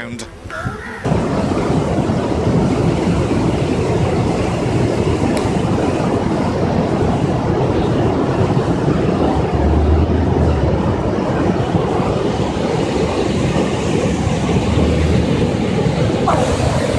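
Floodwater roars and churns loudly as it rushes past.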